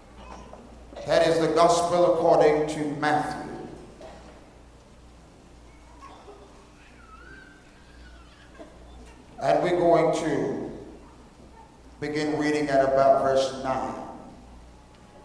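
A man speaks forcefully into a microphone in bursts, with pauses between.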